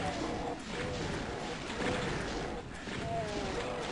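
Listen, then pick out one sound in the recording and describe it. Monsters growl and snarl.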